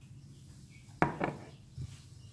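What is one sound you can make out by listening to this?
A glass bowl is set down on a wooden table with a knock.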